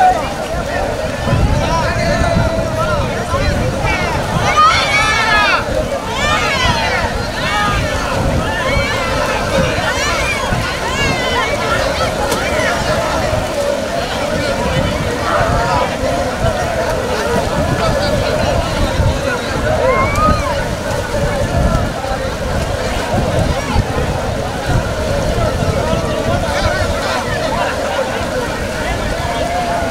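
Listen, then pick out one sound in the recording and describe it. Water splashes as men wade through a river.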